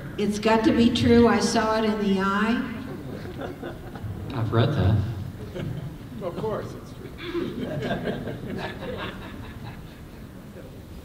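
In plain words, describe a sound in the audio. An elderly man reads out aloud through a microphone in a large echoing room.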